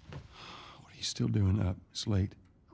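A man answers in a low, tired voice.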